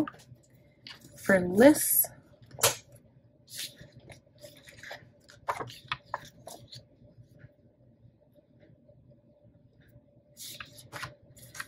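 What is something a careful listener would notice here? Paper pages rustle and flip close by.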